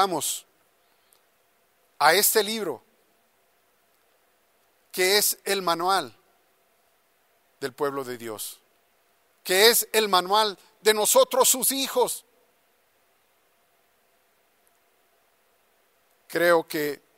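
A middle-aged man speaks slowly and earnestly into a microphone, with long pauses.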